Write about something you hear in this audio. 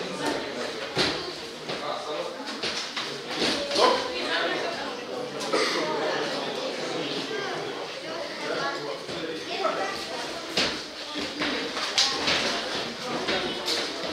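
Boxing gloves thud as punches and kicks land.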